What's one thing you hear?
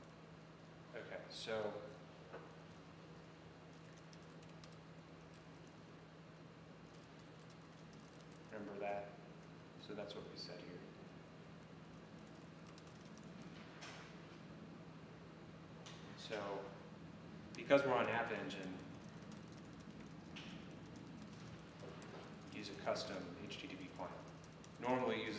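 A young man talks calmly in a short, halting way, heard through a microphone.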